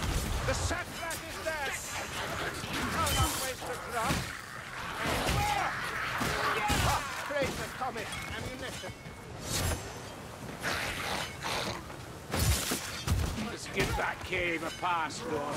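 Rat-like creatures squeal and shriek.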